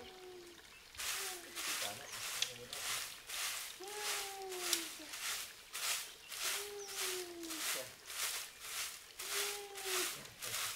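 A broom sweeps the ground in steady, rhythmic strokes.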